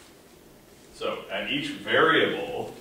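A man speaks in a lecturing tone.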